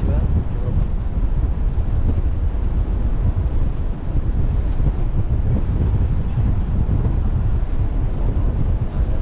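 Strong wind buffets loudly outdoors.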